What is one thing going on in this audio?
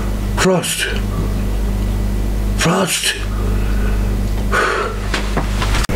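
An elderly man talks on a phone close by.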